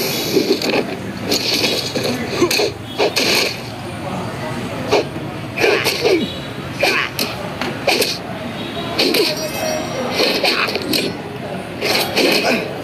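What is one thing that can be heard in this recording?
Weapons swish quickly through the air.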